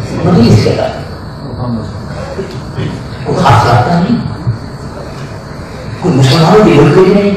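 A middle-aged man speaks with animation into a microphone, with a slight room echo.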